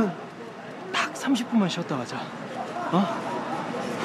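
A young man speaks with animation.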